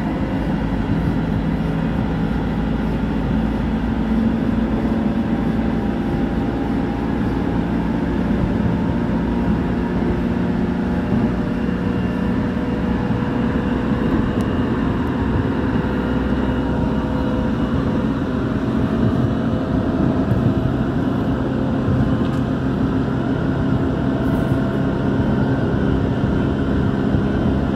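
An electric commuter train rumbles along the track at speed, heard from inside the cabin.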